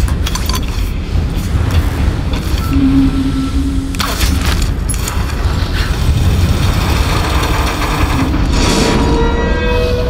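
A bowstring creaks as it is drawn and released.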